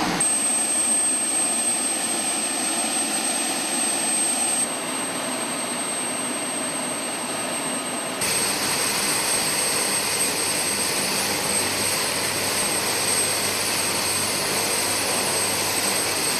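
A helicopter engine whines loudly and its rotor blades whirl steadily close by.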